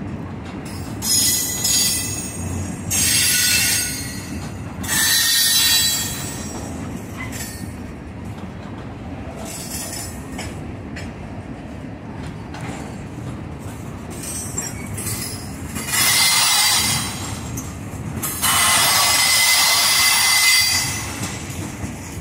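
Train wheels squeal loudly on the rails in bursts.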